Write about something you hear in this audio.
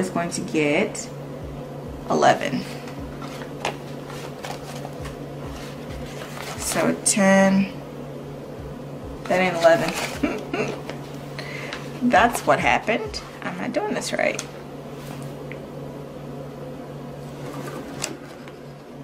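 Plastic binder pages crinkle and rustle as hands handle them.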